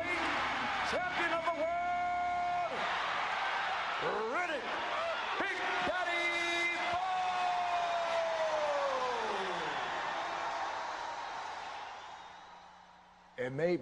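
A large crowd roars and cheers, then slowly fades.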